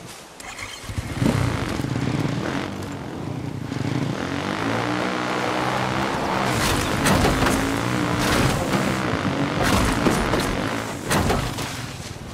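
A dirt bike engine revs and accelerates.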